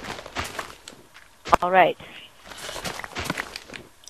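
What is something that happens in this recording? Dirt crunches in short bursts as a shovel digs.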